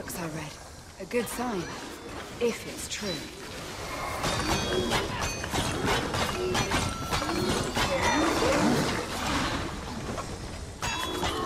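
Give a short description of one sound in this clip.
Metal blades swish and strike repeatedly in a fast fight.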